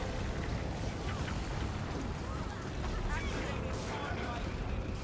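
Magic blasts and hits crackle and boom in a fast game fight.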